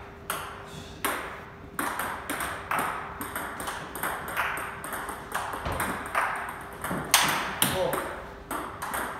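A ping pong ball clicks rapidly off paddles and a table in an echoing room.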